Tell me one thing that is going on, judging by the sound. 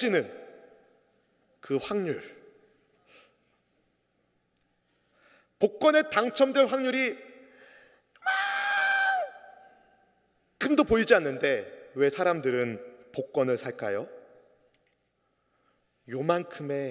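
A middle-aged man speaks with feeling into a microphone, pausing often.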